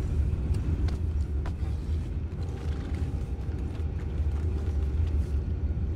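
Boots thud on a wooden deck.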